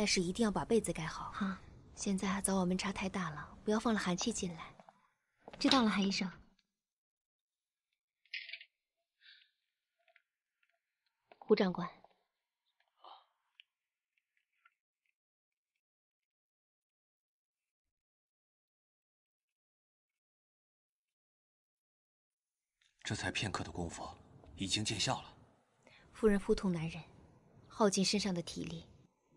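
A woman speaks calmly and softly nearby.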